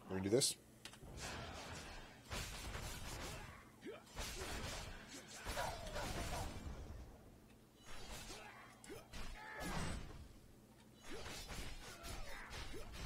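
Fantasy combat sounds of blows and magic blasts crash and whoosh.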